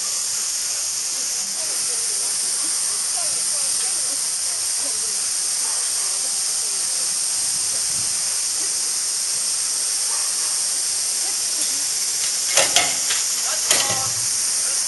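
A steam locomotive hisses steadily.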